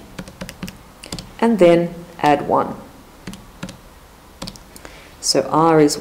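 Calculator keys click under a finger.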